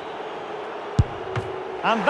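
A football is struck with a sharp thud.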